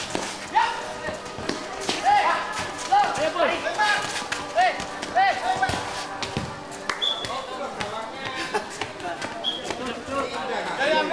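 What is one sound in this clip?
Boys shout and call out to each other outdoors.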